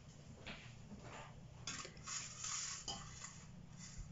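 A metal bowl is set down on a stone counter with a clink.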